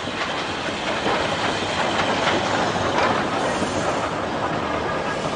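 Train wheels rumble and clatter on the rails.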